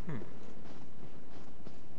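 Footsteps crunch on snow and gravel.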